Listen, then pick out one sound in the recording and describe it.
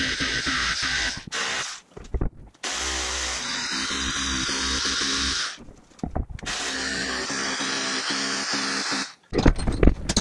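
A cordless hammer drill bores into a concrete floor in bursts.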